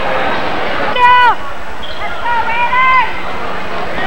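Spectators shout loud, drawn-out calls.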